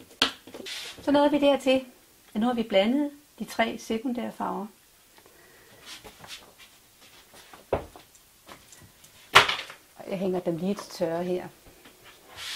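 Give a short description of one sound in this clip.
A middle-aged woman speaks calmly and clearly into a microphone.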